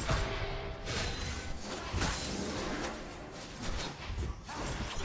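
Game spell effects whoosh and crackle.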